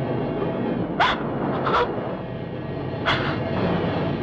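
A young woman sobs close by.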